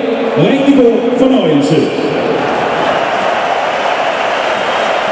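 A large stadium crowd roars steadily in the open air.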